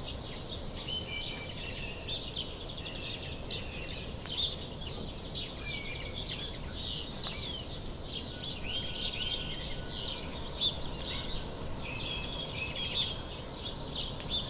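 A squirrel gnaws at a pine cone with soft crunching.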